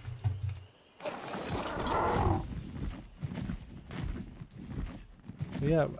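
A large winged creature flaps its wings in flight.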